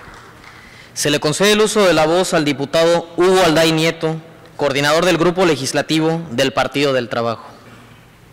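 A woman speaks calmly into a microphone, heard over loudspeakers in a large hall.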